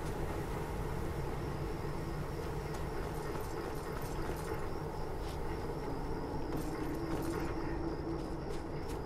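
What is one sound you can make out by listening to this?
Footsteps crunch in snow at a quick pace.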